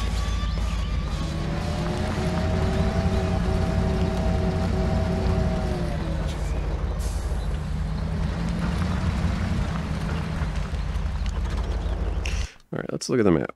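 A truck engine rumbles and drones steadily.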